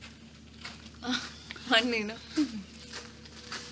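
A woman speaks close by with emotion.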